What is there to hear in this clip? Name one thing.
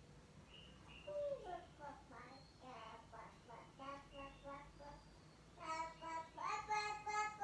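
A woman speaks with animation through a television's loudspeaker.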